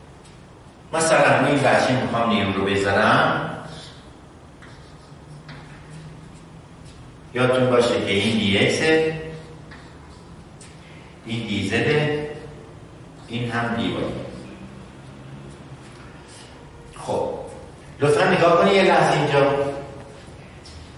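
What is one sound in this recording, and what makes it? A middle-aged man speaks calmly and clearly in a room with a slight echo.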